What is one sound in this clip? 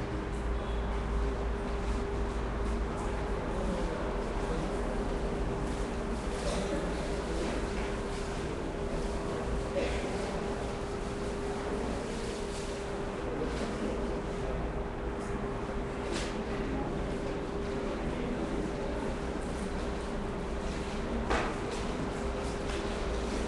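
A large crowd murmurs and chatters softly in an echoing hall.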